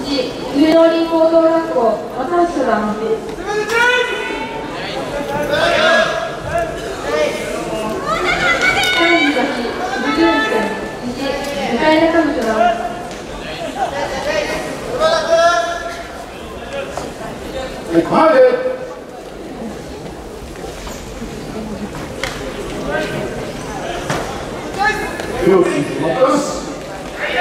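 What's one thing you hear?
A man calls out loudly in a drawn-out, sing-song voice in a large echoing hall.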